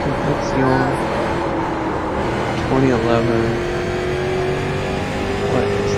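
A race car engine roars loudly at high revs, shifting pitch as the car corners.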